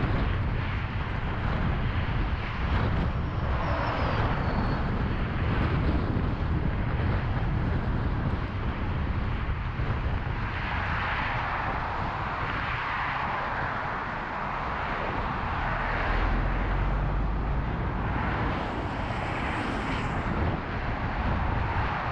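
Cars whoosh past one after another.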